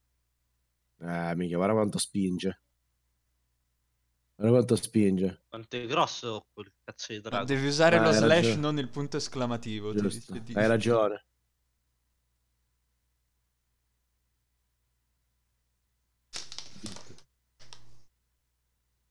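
A young man talks calmly and close into a headset microphone, in bursts with pauses.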